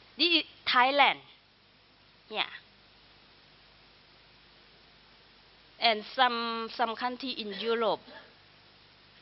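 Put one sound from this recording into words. A woman speaks calmly through a microphone, with pauses.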